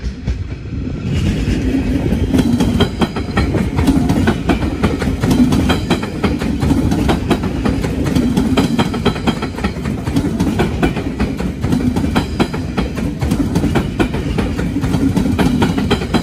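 An electric passenger train rolls past close by.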